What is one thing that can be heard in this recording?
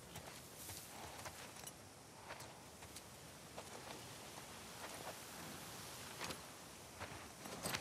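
Footsteps crunch softly through grass.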